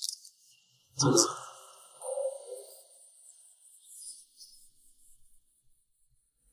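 Paper rustles in hands.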